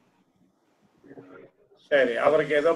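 An elderly man speaks calmly into a microphone, heard as if over an online call.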